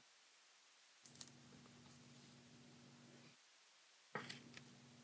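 Trading cards rustle and click as they are handled.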